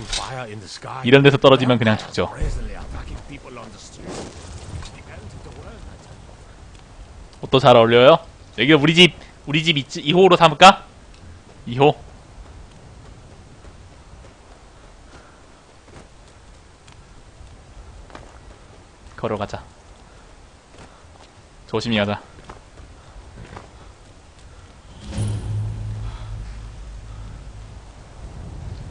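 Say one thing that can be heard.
Bare footsteps run over stone.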